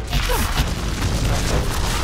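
An electric weapon crackles and buzzes.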